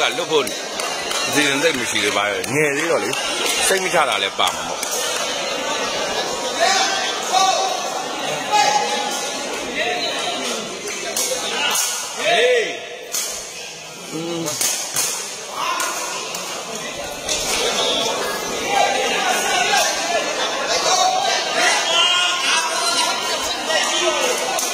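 A crowd of spectators chatters throughout.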